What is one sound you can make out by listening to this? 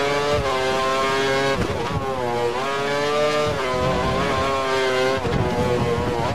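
A racing car engine screams at high revs, dropping in pitch with each gear shift.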